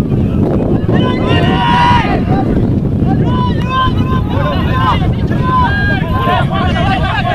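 Young men shout to each other on an open field.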